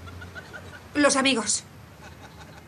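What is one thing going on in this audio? A young woman speaks briefly and anxiously.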